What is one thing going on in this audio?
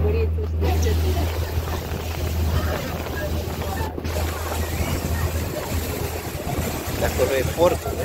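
A boat's engine drones steadily.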